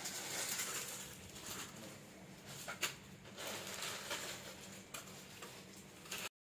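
Fabric and plastic wrapping rustle.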